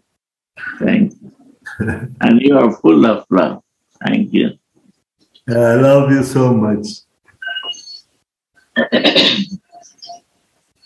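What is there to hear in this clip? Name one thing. A middle-aged man talks warmly over an online call.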